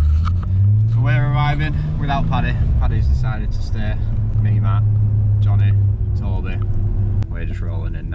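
A man speaks with animation close by inside a car.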